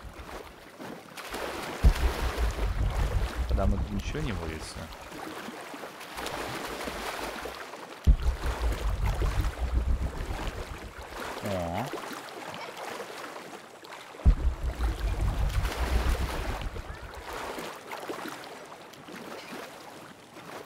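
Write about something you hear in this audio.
Water splashes as someone swims.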